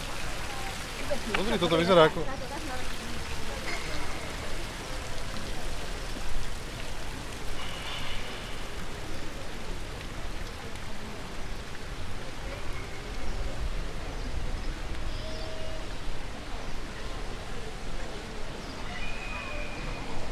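People talk faintly in the distance outdoors.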